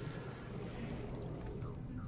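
Water splashes and sloshes.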